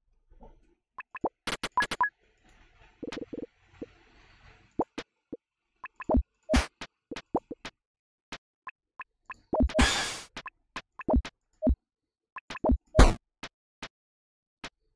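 Sharp fighting game hit effects thud and crack in quick bursts.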